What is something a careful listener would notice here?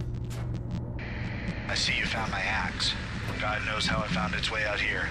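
A radio hisses with static.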